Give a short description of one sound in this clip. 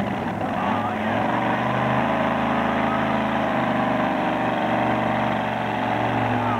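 A tractor engine revs up loudly and roars steadily.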